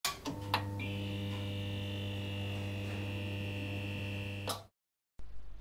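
A neon sign buzzes and hums steadily.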